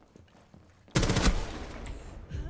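Gunfire bursts out loudly.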